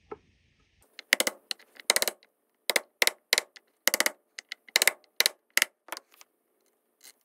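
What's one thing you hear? A wooden block knocks against a metal blade in sharp taps.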